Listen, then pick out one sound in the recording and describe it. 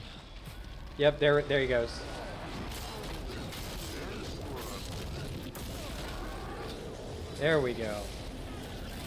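A man speaks loudly and with animation into a close microphone.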